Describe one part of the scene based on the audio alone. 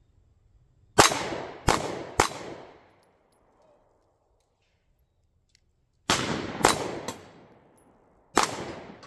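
A handgun fires loud shots outdoors, each echoing away.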